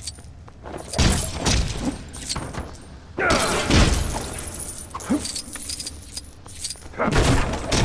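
Plastic bricks clatter and scatter as an object breaks apart.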